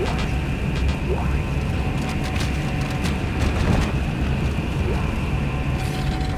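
Heavy armoured footsteps clank on a metal floor.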